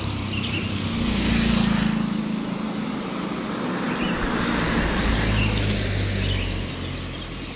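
A car drives past on a road nearby.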